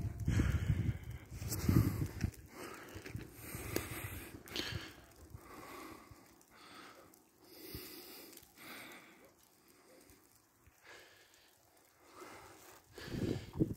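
Wind gusts blow outdoors.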